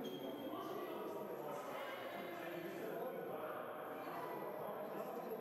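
Footsteps walk across a hard floor in an echoing hall.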